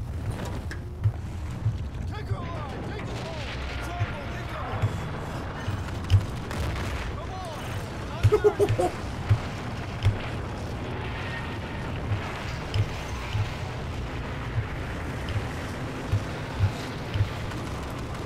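A heavy gun fires in repeated booming shots.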